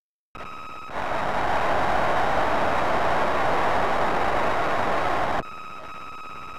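An arcade game plays a loud hissing rush of noise.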